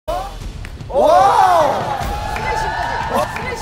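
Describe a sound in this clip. A young girl shouts excitedly.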